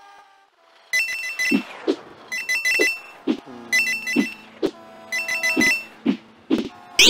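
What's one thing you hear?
Bright chimes ring out quickly as coins are collected.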